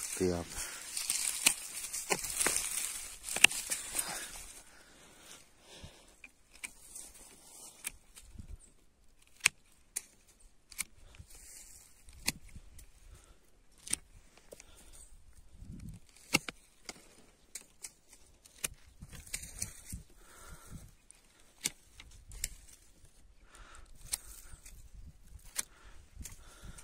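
Pruning shears snip through thin branches with sharp clicks.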